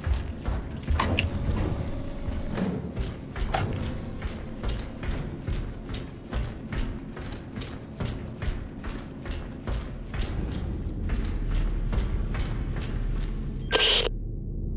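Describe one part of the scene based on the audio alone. Footsteps clang steadily on a metal grating.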